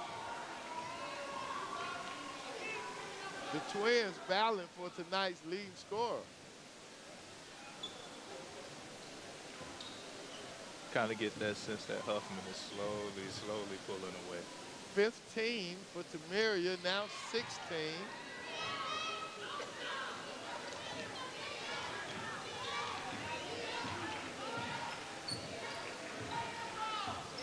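A crowd murmurs in a large echoing gym.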